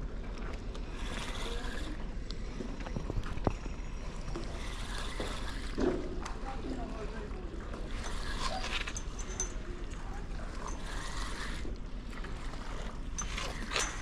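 A fishing reel clicks and whirs as its handle is turned.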